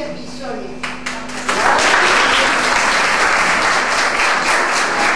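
A group of people applaud loudly.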